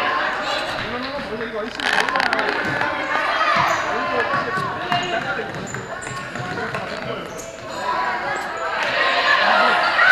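Children shout and chatter throughout a large echoing hall.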